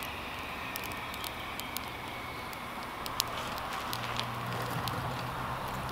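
A small wood fire crackles and pops.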